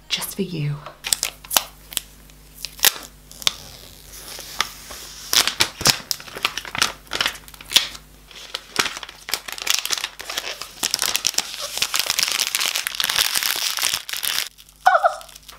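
Plastic wrap crinkles and rustles as it is torn off.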